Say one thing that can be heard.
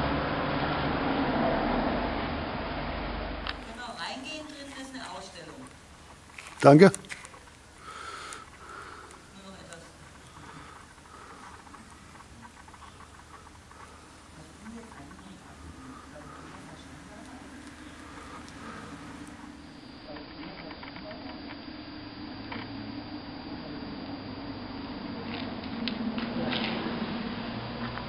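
A man talks nearby outdoors.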